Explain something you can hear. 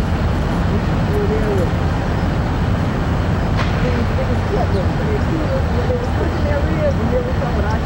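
Cars drive past on a street.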